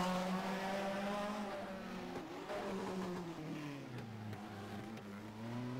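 A racing car engine whines loudly, its pitch rising and falling as it shifts gears.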